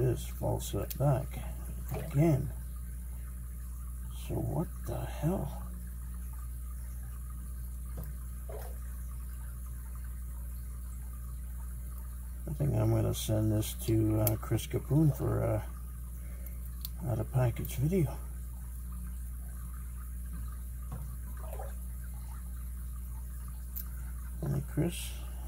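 A metal pick scrapes and clicks softly inside a padlock.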